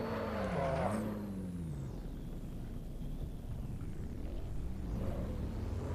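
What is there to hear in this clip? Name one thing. Tyres squeal through a corner.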